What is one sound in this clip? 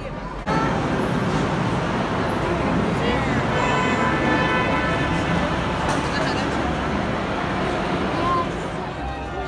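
A ride's cars rumble steadily along a track.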